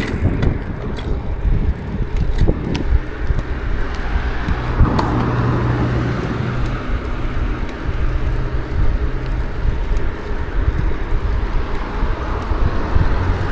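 Wind rushes steadily past, outdoors.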